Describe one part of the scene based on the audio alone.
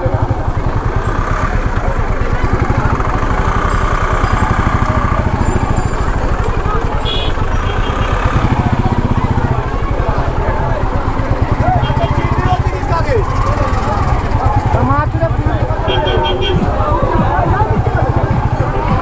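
A motorcycle engine idles with a steady low thumping throb.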